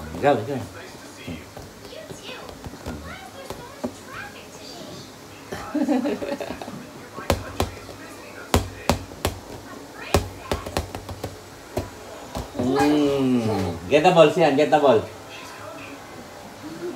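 A toddler babbles.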